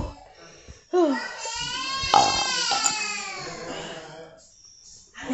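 A young woman lets out a long, loud wail.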